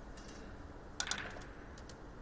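A cue strikes a ball with a sharp tap.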